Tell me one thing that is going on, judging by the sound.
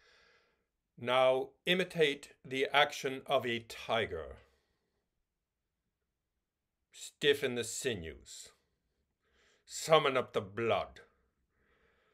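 A man speaks calmly and expressively, close to a microphone, in bursts with long pauses.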